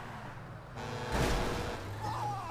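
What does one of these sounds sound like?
A car crashes into a heavy truck with a loud bang.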